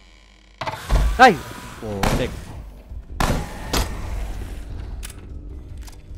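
Gunshots bang sharply several times.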